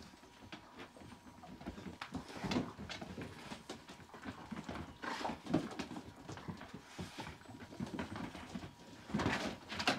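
Dogs growl and snarl as they play-fight up close.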